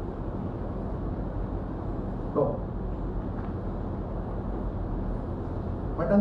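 A man reads out a statement into microphones, close by.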